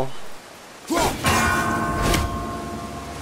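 An axe strikes hard with a heavy clang.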